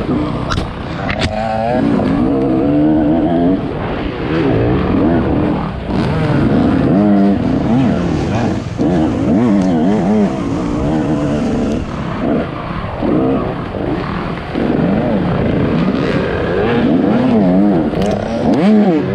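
A dirt bike engine revs hard and changes gear, heard close from the rider's helmet.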